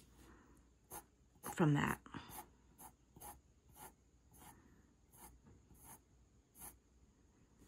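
A pencil scratches on paper in quick, short strokes.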